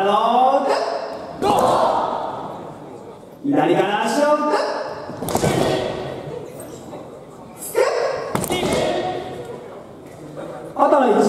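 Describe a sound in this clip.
A group of young people shout a chant in unison in a large echoing hall.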